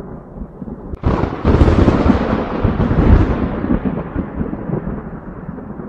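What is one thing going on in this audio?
Thunder cracks sharply and rumbles, then slowly fades.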